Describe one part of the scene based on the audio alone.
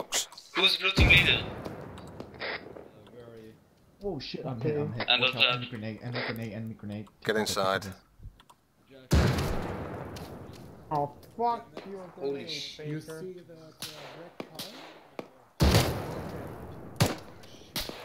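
A rifle fires loud single shots that echo away.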